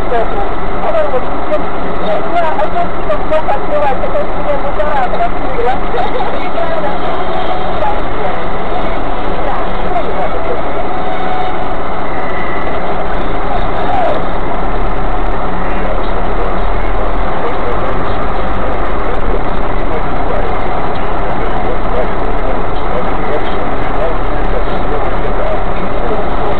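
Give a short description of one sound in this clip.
Tyres roll over a slushy road.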